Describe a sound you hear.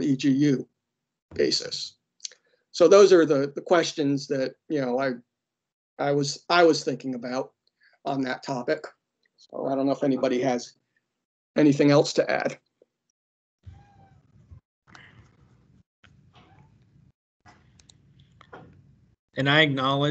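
A man speaks calmly, heard through an online call.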